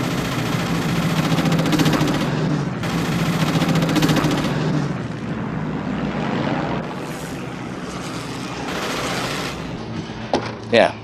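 Propeller plane engines drone steadily overhead.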